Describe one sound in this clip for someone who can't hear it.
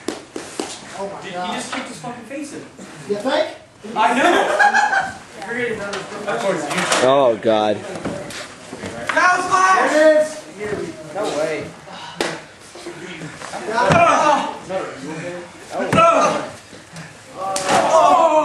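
Bodies thud and slam onto a floor.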